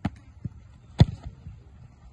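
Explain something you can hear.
A football is kicked with a sharp thump.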